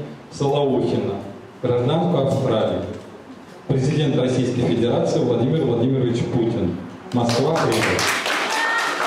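A middle-aged man speaks calmly through a microphone and loudspeakers.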